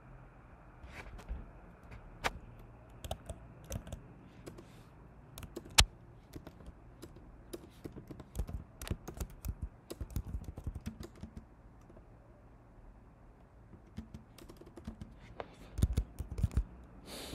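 Keyboard keys click in quick, uneven bursts.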